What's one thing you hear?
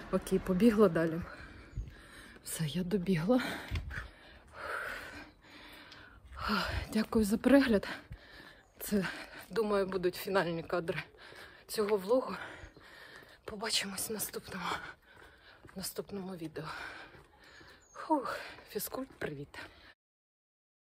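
A woman talks close to the microphone while walking.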